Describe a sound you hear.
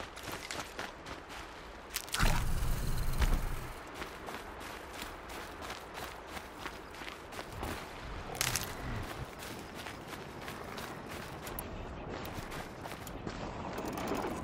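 Footsteps run quickly over dry ground and grass.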